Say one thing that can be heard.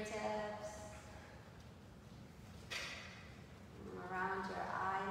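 A woman speaks calmly and clearly, as if leading a class.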